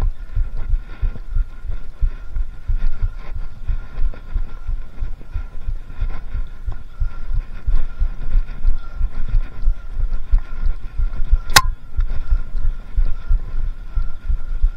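Wind buffets a microphone in strong gusts.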